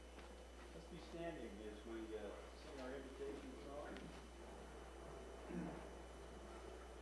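A man speaks quietly and distantly into a microphone.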